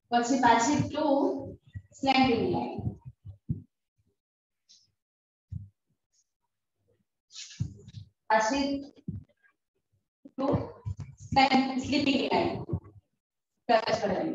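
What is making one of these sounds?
A woman speaks clearly and slowly, as if teaching, close by.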